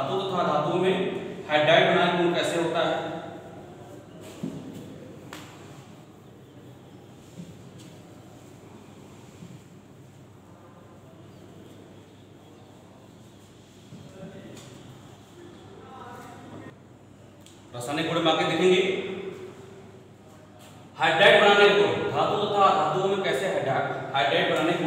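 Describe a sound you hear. A man speaks clearly and steadily into a close microphone, explaining.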